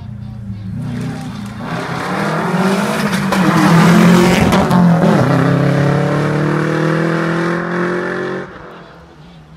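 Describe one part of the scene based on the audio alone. A rally car engine roars past at full throttle.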